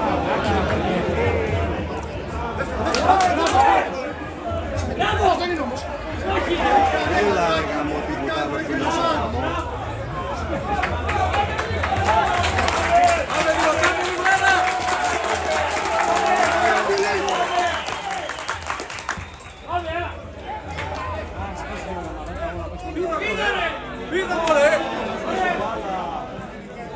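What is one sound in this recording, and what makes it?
Men shout and call out to each other across an open outdoor pitch.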